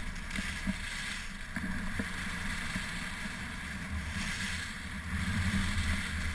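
Wind buffets a moving microphone.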